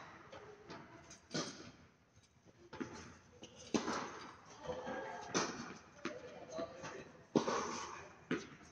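Tennis balls bounce on the court.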